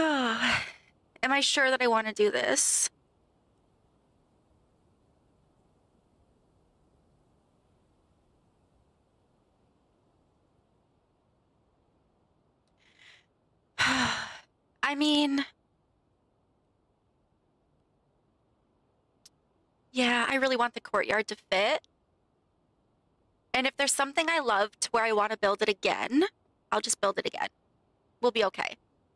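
A young woman talks with animation close to a microphone, in bursts with pauses.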